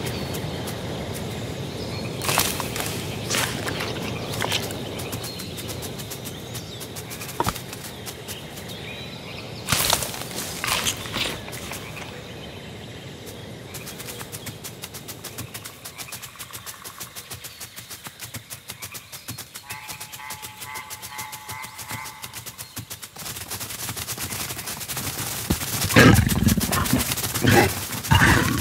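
A small creature patters through rustling plants.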